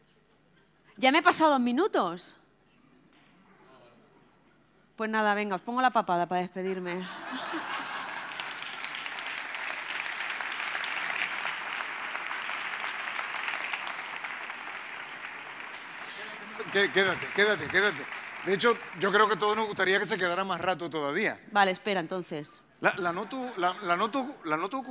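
A young woman speaks with animation through a microphone in a large hall.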